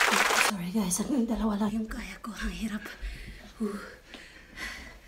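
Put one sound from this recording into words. A woman talks close up, laughing and out of breath.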